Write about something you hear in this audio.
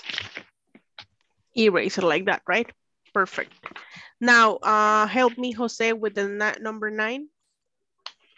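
A woman speaks clearly and slowly over an online call.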